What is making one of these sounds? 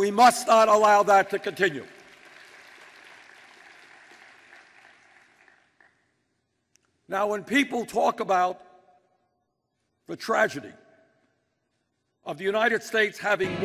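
An elderly man speaks forcefully through a microphone, pausing between phrases, in a large echoing hall.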